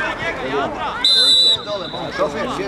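A referee's whistle blows one short, sharp blast at a distance.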